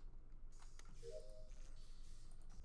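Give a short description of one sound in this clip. A short electronic chime rings.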